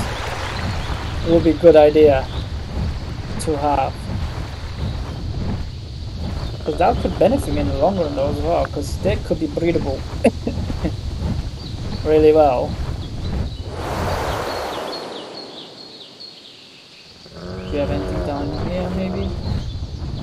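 A large bird beats its wings with heavy whooshing flaps.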